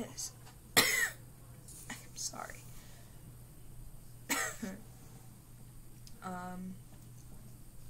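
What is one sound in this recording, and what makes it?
A young woman speaks softly and haltingly, close to the microphone.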